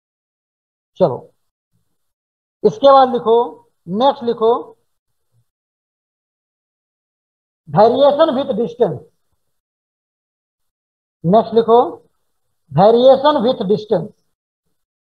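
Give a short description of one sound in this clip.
A man speaks calmly into a headset microphone, in short bursts with pauses.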